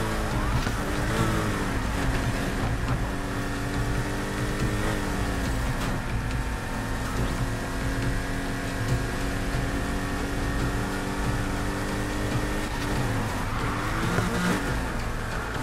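A car engine roars at high revs, shifting pitch as it speeds up and slows.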